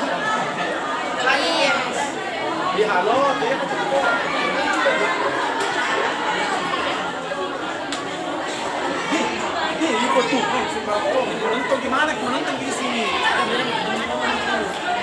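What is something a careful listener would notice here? A choir of teenage girls and boys sings together through a loudspeaker, outdoors.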